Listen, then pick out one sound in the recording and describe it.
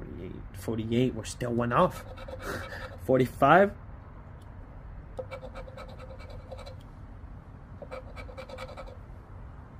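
A coin scratches across a paper ticket.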